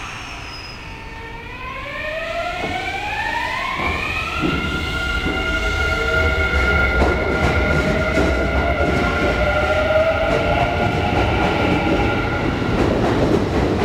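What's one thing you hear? An electric train's motor whines, rising steadily in pitch as it pulls away.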